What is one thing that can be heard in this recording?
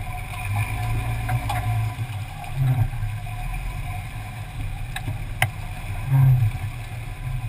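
Water rushes and splashes around a vehicle's tyre in a shallow stream.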